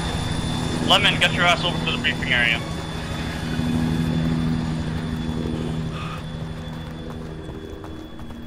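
A helicopter's engine and rotor hum steadily nearby, then slowly fade.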